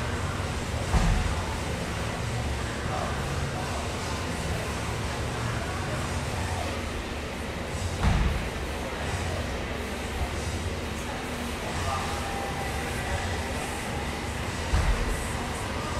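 Dumbbells thud heavily on a hard floor.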